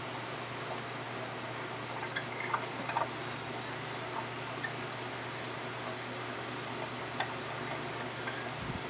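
A potter's wheel hums steadily as it spins.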